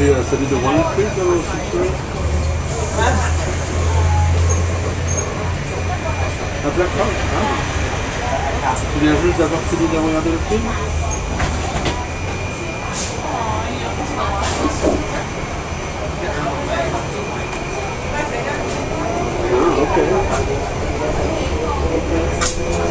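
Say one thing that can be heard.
The wheels of a train rattle and clatter over the rails.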